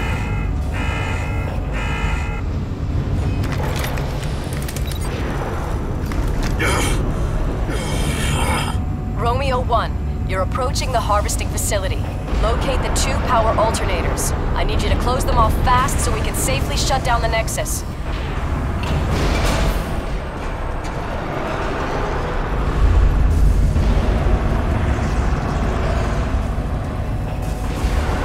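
A deep mechanical hum drones steadily.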